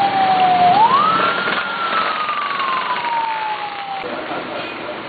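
A siren wails loudly nearby, rising then slowly falling in pitch.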